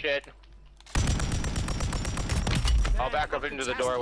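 Rapid gunfire rattles in a long burst.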